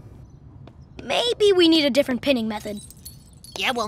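A cartoon boy's voice exclaims with animation, close to the microphone.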